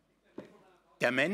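A man speaks through a loudspeaker.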